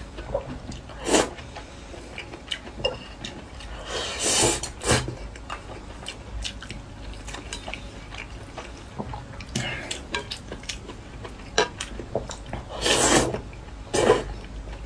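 A young man slurps noodles close to the microphone.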